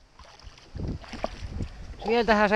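A hooked fish splashes at the water's surface beside a boat.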